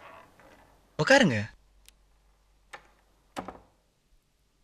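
A woman speaks.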